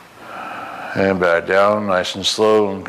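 A man speaks briefly in an echoing hallway.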